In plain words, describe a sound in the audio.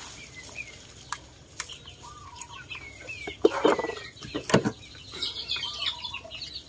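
A knife scrapes the scales off a fish in quick, rough strokes.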